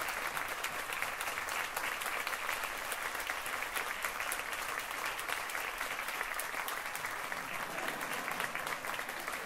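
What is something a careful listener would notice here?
A large audience applauds steadily in a big echoing hall.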